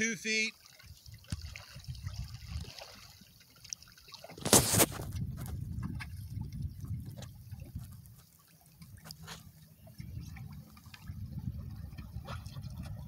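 Wind blows and rumbles across open water.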